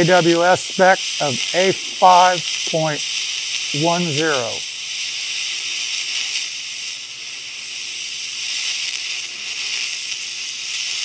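A welding arc hisses and crackles steadily.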